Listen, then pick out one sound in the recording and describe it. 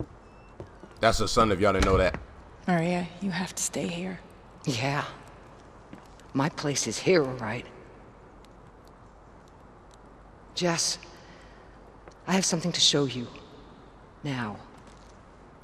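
A woman speaks calmly and earnestly.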